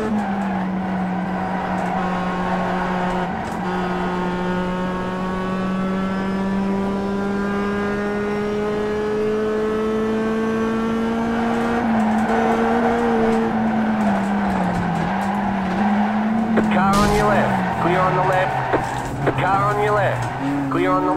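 A racing car engine hums steadily from loudspeakers, its pitch slowly rising and then dipping.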